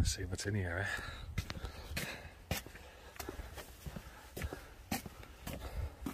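Footsteps walk on pavement outdoors.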